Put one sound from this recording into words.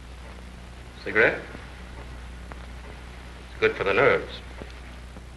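A man speaks briefly in a calm voice.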